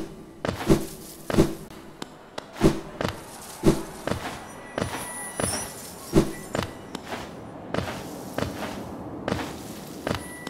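Soft thuds and whooshes of a small game character jumping and landing repeat in quick succession.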